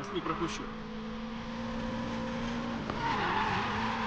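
Tyres screech as a car drifts through a turn.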